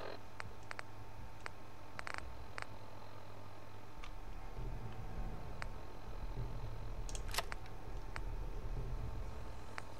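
Short soft clicks tick now and then as a game menu is scrolled.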